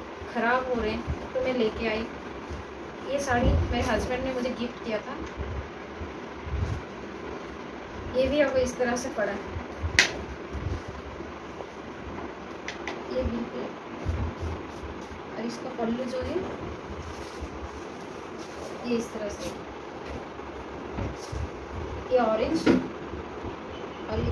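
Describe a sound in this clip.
Fabric rustles and flaps as cloth is unfolded and spread out.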